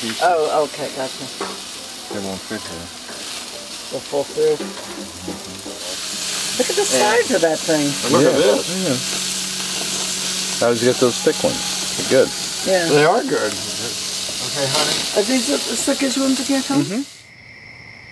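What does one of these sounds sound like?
Food sizzles and hisses on a hot grill.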